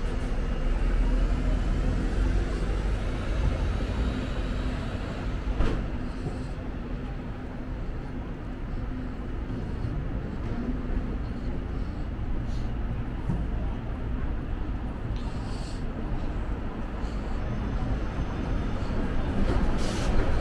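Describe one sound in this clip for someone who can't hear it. Traffic rumbles steadily in the distance outdoors.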